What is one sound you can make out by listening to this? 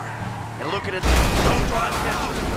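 A car crashes with a loud metal bang.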